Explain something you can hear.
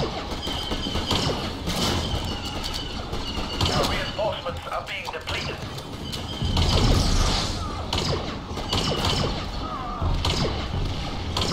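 Laser blasters fire in rapid sharp bursts.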